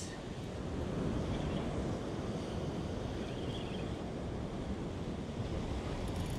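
A fishing reel clicks as its handle turns.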